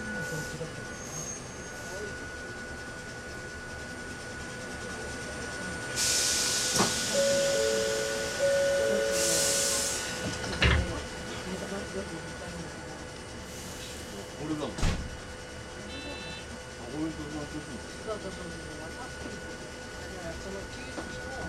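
A train rumbles and hums steadily along the track.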